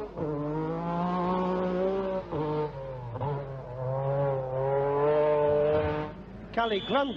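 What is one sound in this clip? A rally car engine roars at high revs.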